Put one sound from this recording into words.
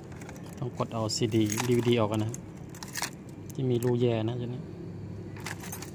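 Keys jingle on a key ring.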